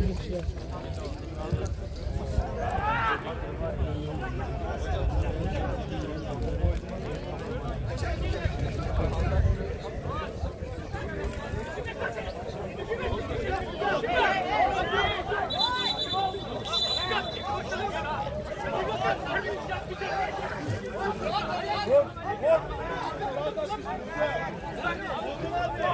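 Young men shout and call to each other at a distance outdoors.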